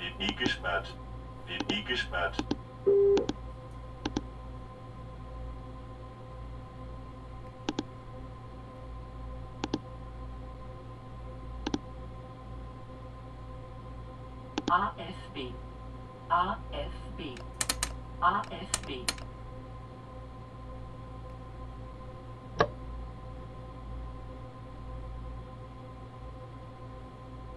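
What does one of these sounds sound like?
A low, steady hum drones inside a train cab.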